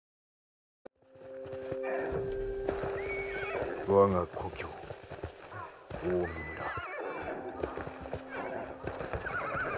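Hooves thud quickly as a horse gallops through tall grass.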